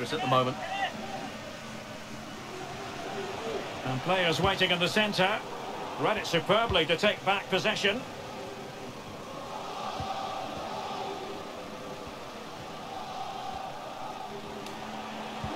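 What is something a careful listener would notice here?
A large stadium crowd murmurs and chants steadily in the distance.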